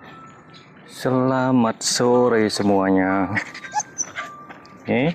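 A dog howls loudly in long, wavering cries.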